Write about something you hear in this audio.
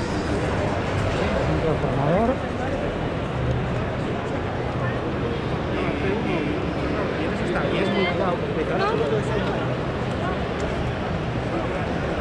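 A crowd murmurs and chatters in a large echoing hall.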